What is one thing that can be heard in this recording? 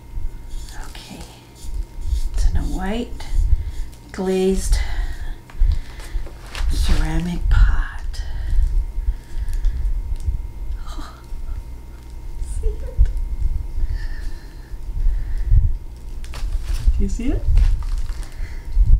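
Fluffy stuffing rustles and scrunches in a woman's hands.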